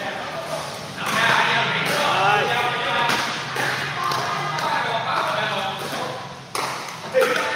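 Men talk and call out in an echoing hall.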